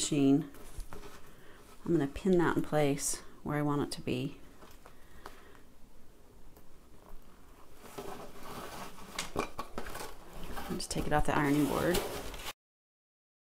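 Fabric and cord rustle softly as hands handle them.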